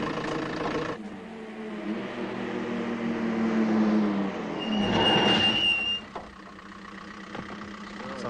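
A car engine revs as a vehicle pulls away.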